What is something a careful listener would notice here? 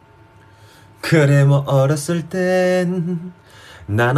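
A young man sings loudly and close by.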